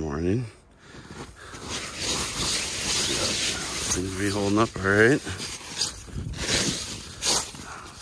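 A gloved hand brushes and scrapes snow off a tent roof.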